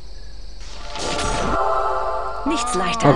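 A magical spell shimmers and chimes.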